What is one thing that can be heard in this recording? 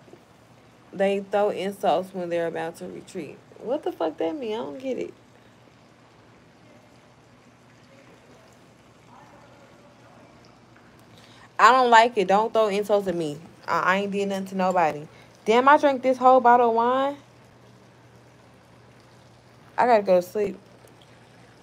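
A young woman talks casually and close by, with pauses.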